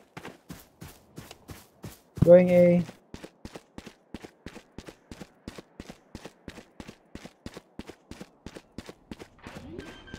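Footsteps patter quickly and steadily on hard ground.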